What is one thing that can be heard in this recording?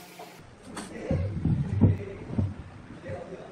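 A wooden chair leg knocks onto a wooden bench.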